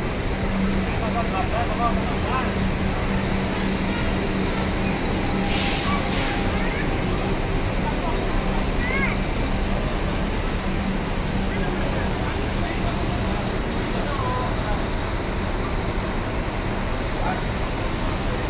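Men talk nearby in the background.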